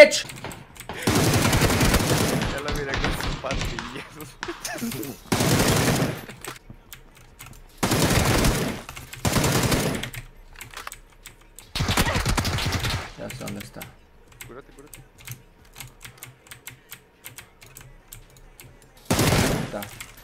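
Bursts of rapid gunfire ring out.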